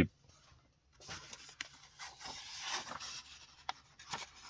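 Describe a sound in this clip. Paper pages rustle and crinkle as they are turned.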